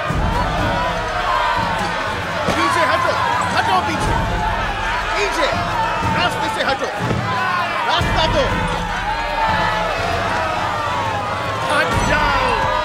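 A crowd of women wail and cry out loudly.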